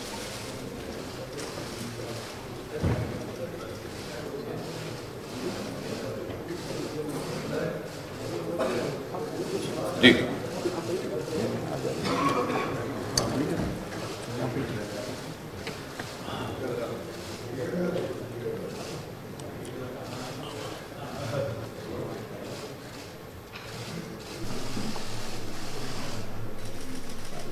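A crowd of men chatter and murmur in a large room.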